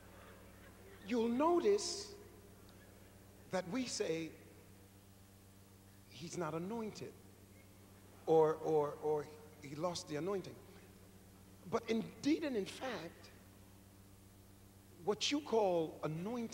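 A man preaches forcefully into a microphone, in short bursts with pauses between.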